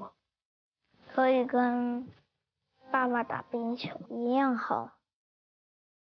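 A young boy speaks calmly and close by.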